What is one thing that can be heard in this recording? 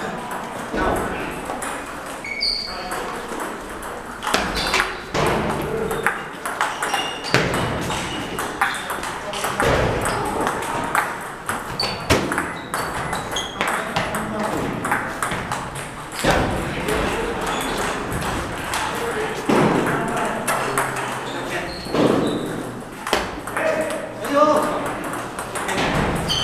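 Ping pong balls click on paddles and tables in a large echoing hall.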